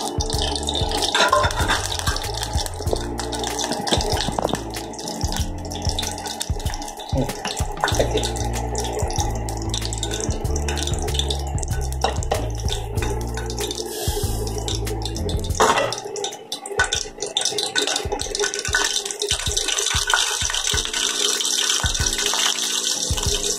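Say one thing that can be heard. Oil sizzles and crackles softly in a hot pan.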